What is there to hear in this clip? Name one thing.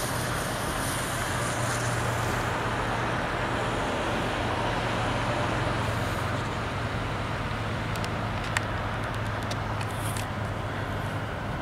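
Diesel freight locomotives rumble as they approach.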